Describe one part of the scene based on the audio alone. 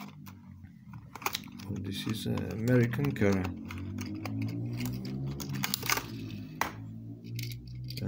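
A plastic case crinkles and clicks as hands open it.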